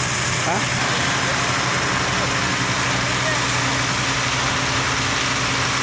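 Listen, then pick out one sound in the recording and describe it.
A large fire roars and crackles steadily outdoors.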